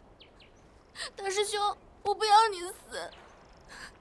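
A young woman speaks in a tearful, pleading voice.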